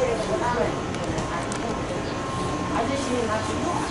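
A woman talks quietly nearby.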